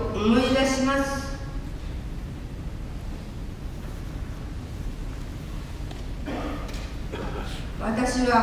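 A man speaks slowly through a loudspeaker in a large echoing hall.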